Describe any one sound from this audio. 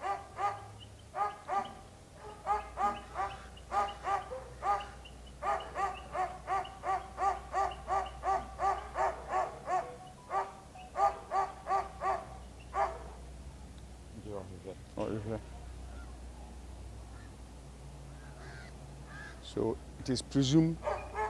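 A dog sniffs eagerly.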